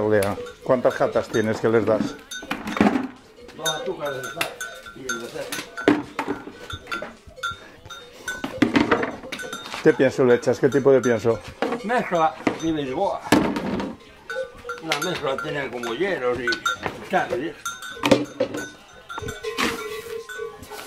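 Plastic lids and buckets knock and clatter.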